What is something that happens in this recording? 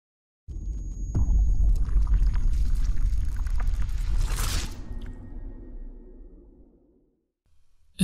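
A glass sphere shatters with a deep rumbling crash that slowly fades.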